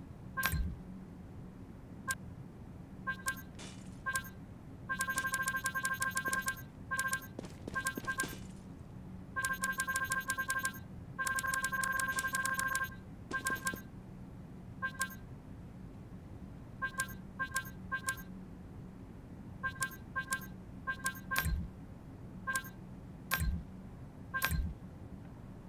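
Short electronic beeps chirp again and again as menu items are picked.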